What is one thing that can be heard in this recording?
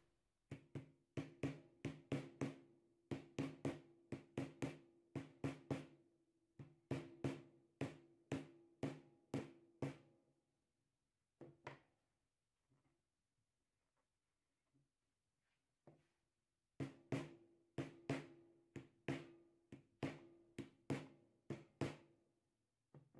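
A rubber mallet strikes a plastic battery case again and again with dull, ringing thuds.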